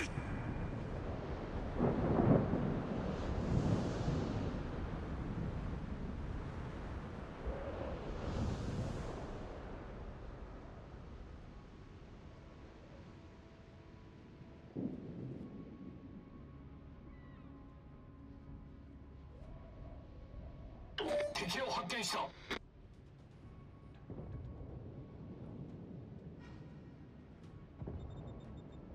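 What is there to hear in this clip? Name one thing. Water rushes and splashes against a moving ship's hull.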